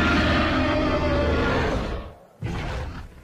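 A large dinosaur roars loudly.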